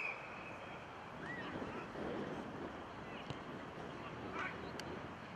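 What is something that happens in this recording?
Young players shout and chatter at a distance outdoors.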